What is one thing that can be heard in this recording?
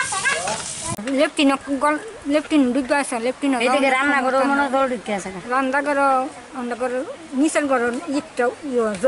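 A middle-aged woman speaks with animation close by.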